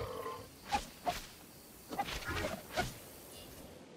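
A dinosaur gives short sharp calls.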